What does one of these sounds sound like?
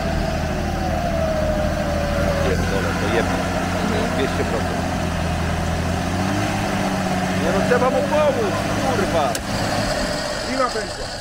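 An off-road vehicle's engine rumbles steadily at idle.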